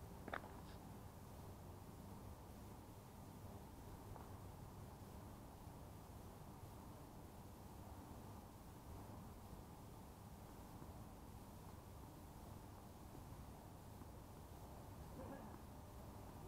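Wind rumbles steadily across an open outdoor space.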